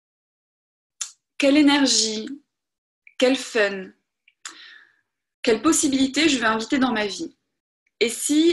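A young woman speaks calmly through an online call, in short bursts with pauses.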